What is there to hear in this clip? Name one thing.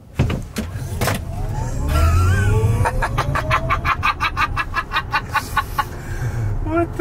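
An electric motor whines, rising in pitch as the car speeds up.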